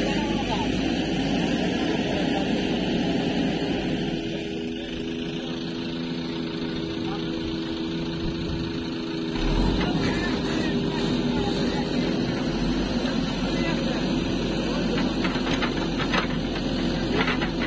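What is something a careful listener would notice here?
A diesel engine of a backhoe loader rumbles steadily close by.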